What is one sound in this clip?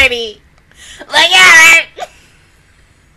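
A young woman laughs loudly close to a microphone.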